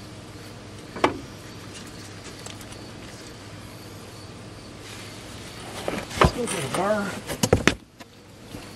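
Metal parts clank and knock sharply.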